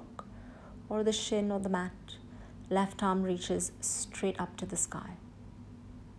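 A young woman speaks calmly and clearly, close by.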